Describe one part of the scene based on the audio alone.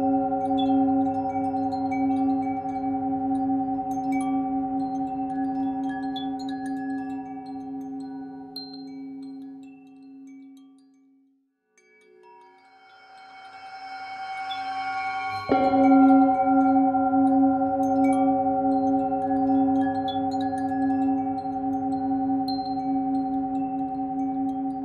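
A singing bowl rings with a steady, humming tone as a mallet circles its rim.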